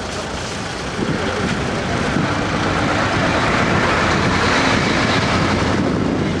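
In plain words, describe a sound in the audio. A middle-aged man speaks from inside a car.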